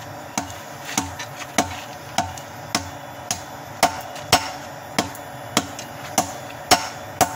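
A hammer strikes hot metal on an anvil in steady, ringing blows.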